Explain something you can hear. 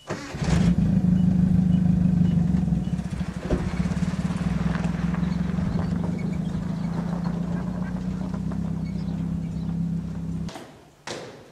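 A pickup truck engine rumbles steadily as the truck drives slowly away.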